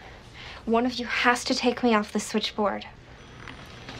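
A woman speaks close by in an agitated, exaggerated tone.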